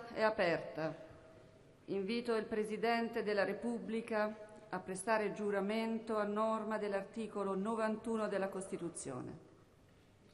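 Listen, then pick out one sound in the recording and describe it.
A woman speaks formally through a microphone in a large echoing hall.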